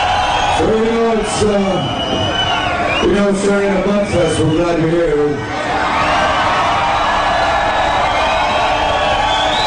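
An electric guitar plays loud and distorted.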